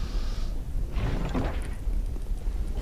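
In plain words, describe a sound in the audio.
A heavy wooden chest lid creaks open.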